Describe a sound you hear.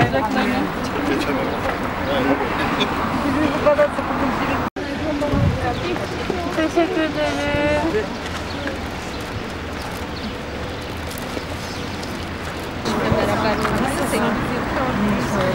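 A crowd of women and men talk excitedly nearby.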